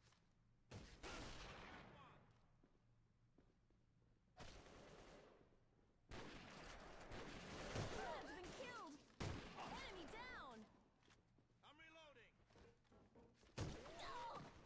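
Sniper rifle shots crack loudly and echo.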